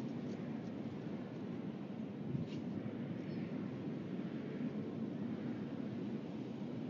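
Wind rumbles steadily against a microphone outdoors.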